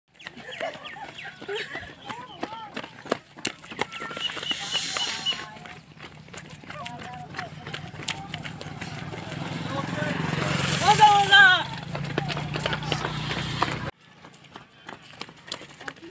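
Many footsteps slap on a paved road as runners pass close by.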